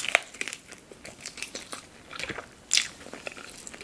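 A woman bites into crispy chicken skin with a crunch.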